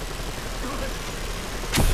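Rockets fire and whoosh away.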